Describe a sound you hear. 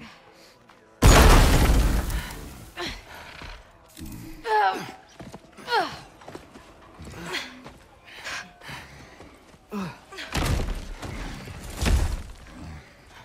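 A heavy thud and a crash ring out.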